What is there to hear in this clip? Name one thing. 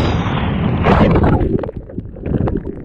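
Water gurgles and bubbles underwater.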